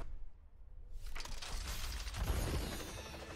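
A box bursts open with a bright, shimmering whoosh.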